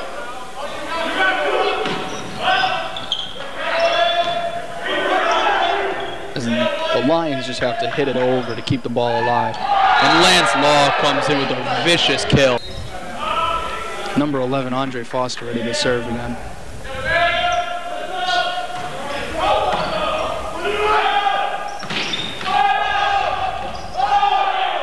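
A volleyball is struck hard.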